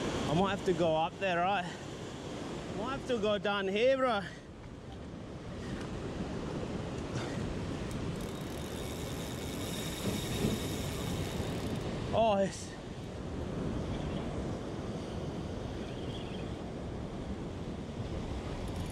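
Waves crash and wash against rocks close by.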